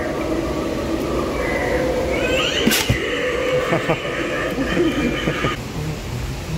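A growling, distorted voice cackles through a small loudspeaker.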